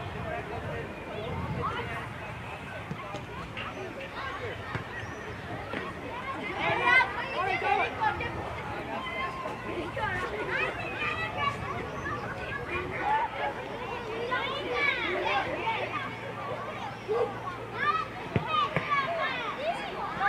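Children shout and call out across an outdoor field.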